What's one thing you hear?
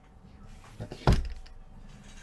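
A cardboard box thumps down onto a table.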